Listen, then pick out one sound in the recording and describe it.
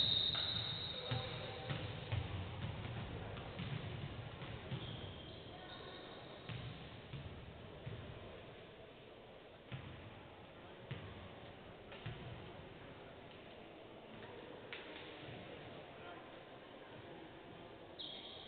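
Basketballs bounce on a wooden court in a large echoing hall.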